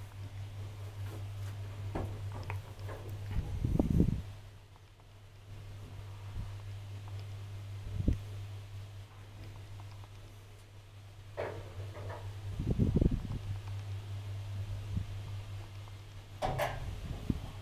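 An elevator car hums steadily as it travels.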